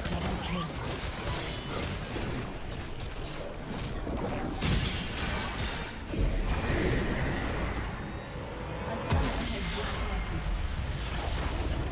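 Spell effects crackle and whoosh in a busy fight.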